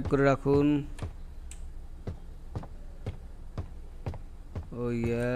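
Footsteps thud at an even pace.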